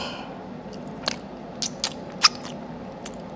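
A man sucks and smacks his fingers close to a microphone.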